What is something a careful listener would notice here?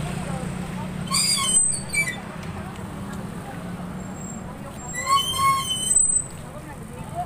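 A woman calls out loudly.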